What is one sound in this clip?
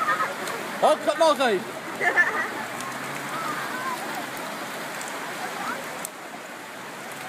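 Water rushes steadily, carrying masses of floating wood debris.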